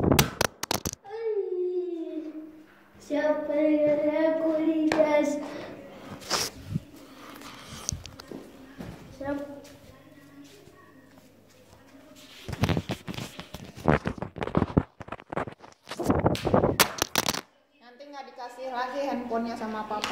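A young child talks close to the microphone.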